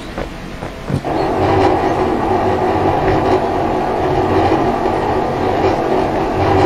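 A wooden crate scrapes along a hard floor.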